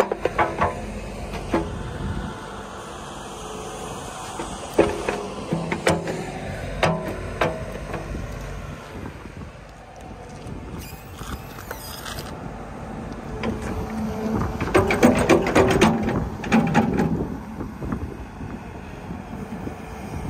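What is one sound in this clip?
A diesel engine idles nearby with a low rumble.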